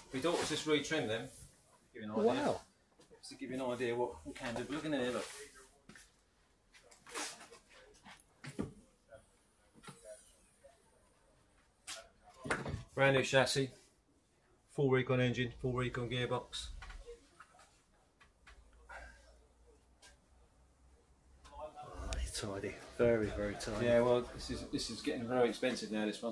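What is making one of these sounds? A man speaks calmly close by.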